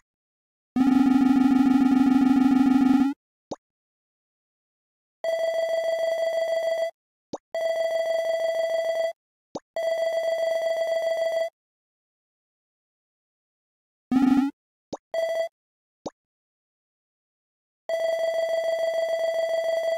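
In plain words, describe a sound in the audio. Rapid electronic blips chatter in bursts.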